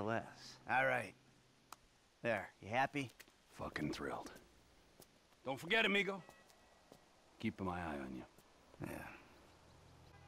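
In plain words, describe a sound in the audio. A man speaks with animation up close.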